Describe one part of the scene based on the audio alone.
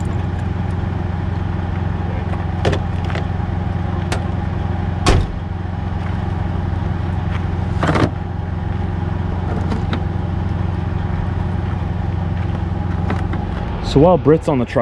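A diesel semi truck engine idles.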